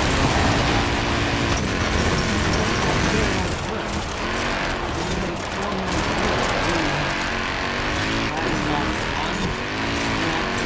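A racing car engine roars and revs as it speeds along.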